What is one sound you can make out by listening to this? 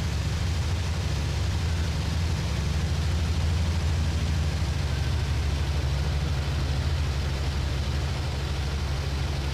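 A propeller engine drones loudly and steadily close by.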